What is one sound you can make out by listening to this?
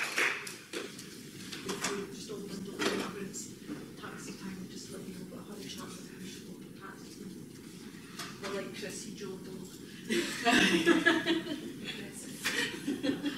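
A woman speaks calmly to an audience.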